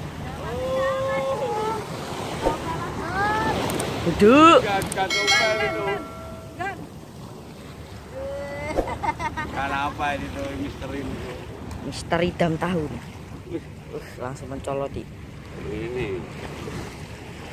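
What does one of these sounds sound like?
Waves wash against a stone jetty.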